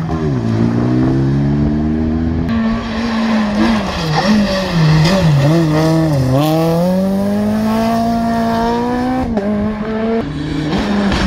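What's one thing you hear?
A rally car engine revs hard through a hairpin, its pitch dropping and climbing with gear changes.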